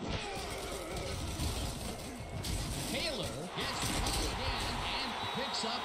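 Football players collide with heavy thuds.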